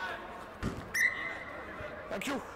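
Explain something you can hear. A referee blows a whistle in a short sharp blast.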